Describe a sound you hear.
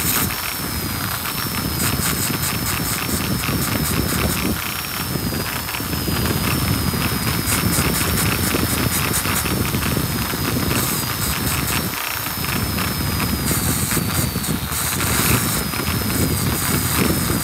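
A grinding stone grinds against a metal ring.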